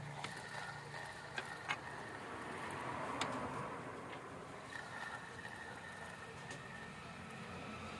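A fishing reel whirs softly as its spool spins.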